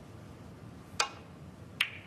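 A cue strikes a snooker ball with a sharp click.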